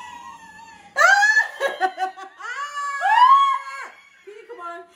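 A young woman shrieks with excitement.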